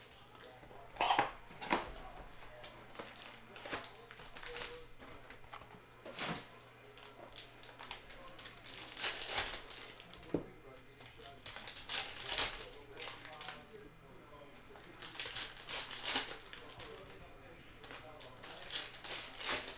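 Foil packs crinkle and rustle in a person's hands.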